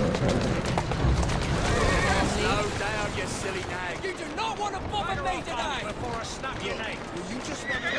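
Carriage wheels rumble over cobblestones.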